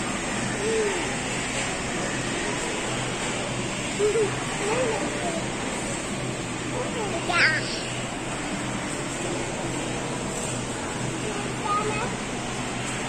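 A young girl speaks and exclaims nearby.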